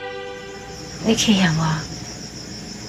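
A young woman speaks quietly and sadly, close by.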